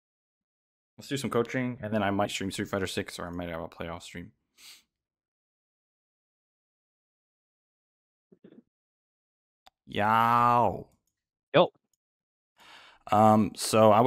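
A young man talks with animation, close to a microphone, with pauses.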